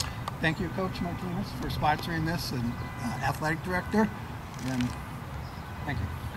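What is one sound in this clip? An elderly man speaks calmly into a microphone over a loudspeaker outdoors.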